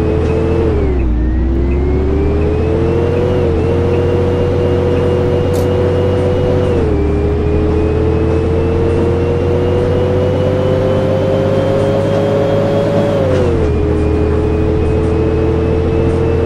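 Tyres roll over a road.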